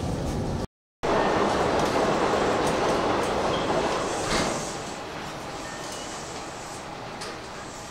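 An approaching train hums and rolls in over the rails.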